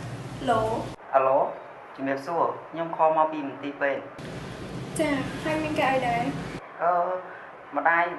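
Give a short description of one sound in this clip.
A young woman talks on a phone calmly.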